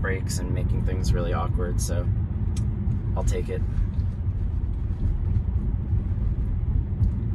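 A car rolls along with a low, steady road rumble heard from inside.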